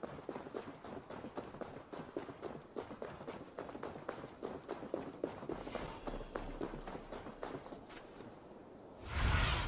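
Footsteps crunch steadily along a gravel path.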